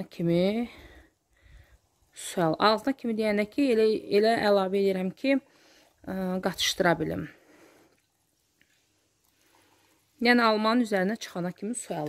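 Water pours into a glass jar.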